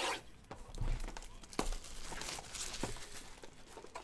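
Plastic wrap crinkles as a pack is torn open.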